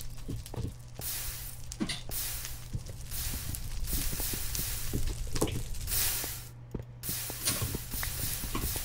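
Blocks crack and crumble as they are broken, again and again.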